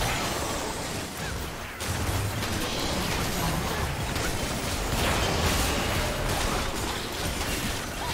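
Game spell effects and combat sounds burst and clash in quick succession.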